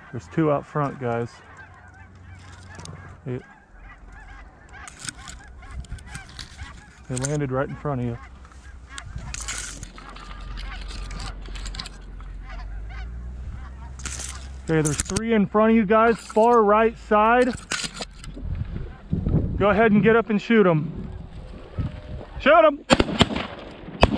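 Geese honk repeatedly nearby.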